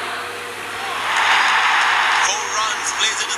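A crowd in a stadium cheers and roars.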